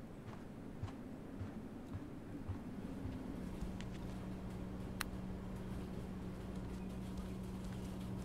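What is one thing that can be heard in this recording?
Footsteps tread softly across a hard floor.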